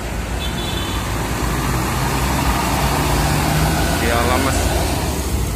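Road traffic roars past outdoors, growing louder.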